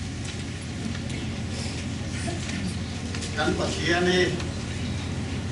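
A middle-aged man speaks calmly into a microphone over loudspeakers.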